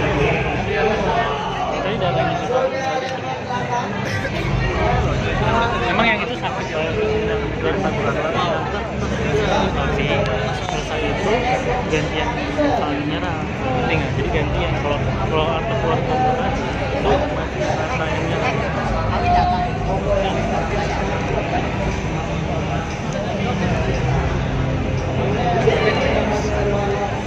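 A crowd chatters all around in a busy, echoing hall.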